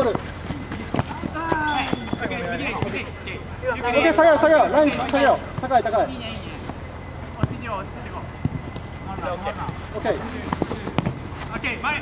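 A ball thuds off a player's foot.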